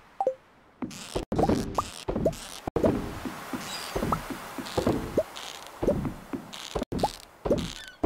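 Quick rising blips sound as items are picked up, one after another.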